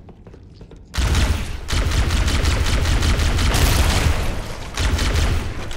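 A plasma weapon fires in rapid bursts.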